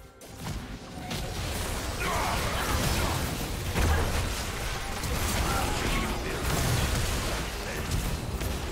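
Magic spells crackle and blast in quick succession.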